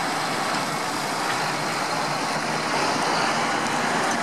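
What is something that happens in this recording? A second tractor engine rumbles as it approaches.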